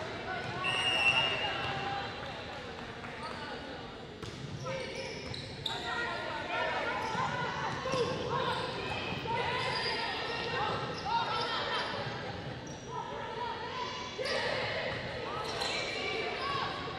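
Players' shoes squeak on a hardwood court in a large echoing gym.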